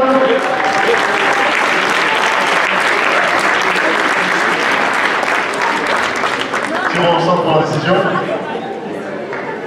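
A man announces loudly through a microphone over loudspeakers in a large echoing hall.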